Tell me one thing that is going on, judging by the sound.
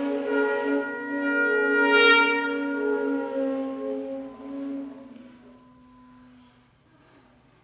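Brass and string instruments hold a long, loud chord that slowly fades away.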